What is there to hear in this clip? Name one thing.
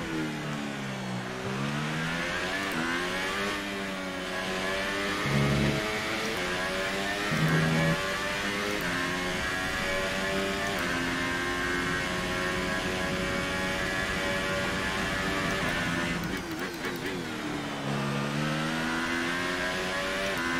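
A racing car engine revs high and shifts up through the gears, then drops as it slows for a corner.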